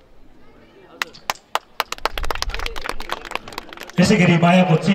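People clap their hands in scattered claps.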